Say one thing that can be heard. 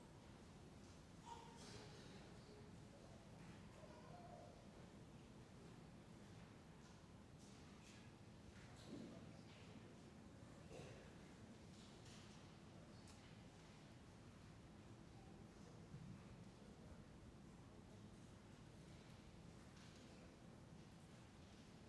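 A crowd of people murmurs and chats quietly in a large echoing hall.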